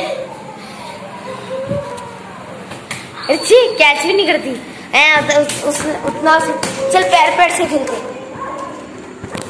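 A young child calls out excitedly nearby.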